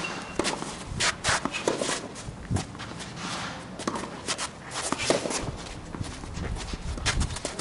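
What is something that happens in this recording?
Tennis balls are struck with rackets in a sharp pop, back and forth, outdoors.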